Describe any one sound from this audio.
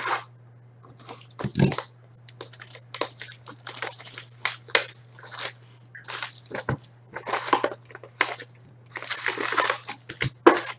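Plastic wrapping crinkles and rustles as a box is unwrapped.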